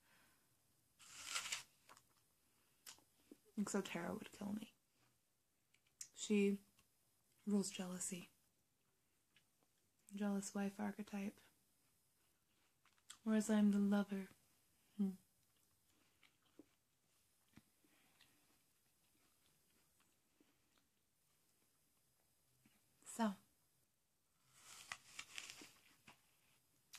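A young woman bites into a crisp apple with a loud crunch.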